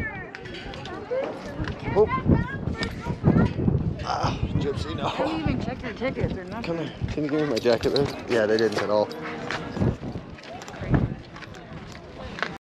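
Footsteps shuffle on a concrete path.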